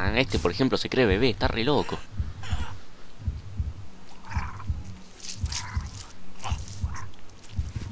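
Blows thump against a body.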